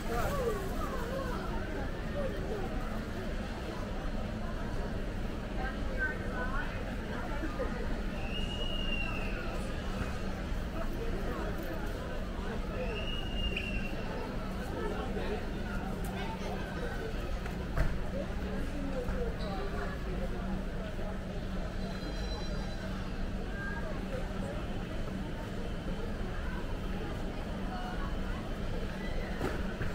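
Shopping cart wheels rattle on a smooth floor.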